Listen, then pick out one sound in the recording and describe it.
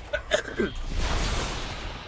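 A fiery whoosh bursts out.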